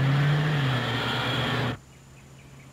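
A car roars past close by.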